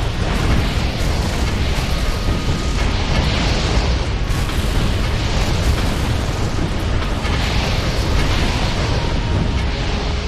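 Game towers fire rapid zapping laser shots.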